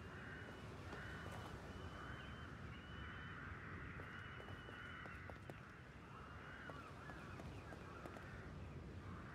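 Footsteps crunch slowly over rubble.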